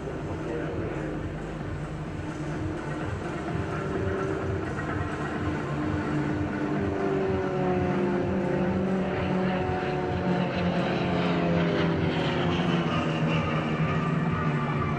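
Several aerobatic propeller planes drone overhead in formation, their engine pitch rising and falling.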